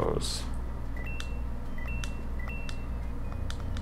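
Short electronic blips sound in quick succession.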